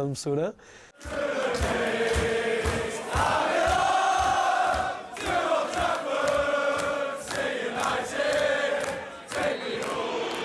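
A crowd of men chants and sings loudly in an echoing room.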